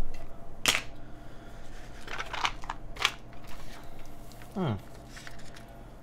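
A plastic case clicks and rattles as it is handled.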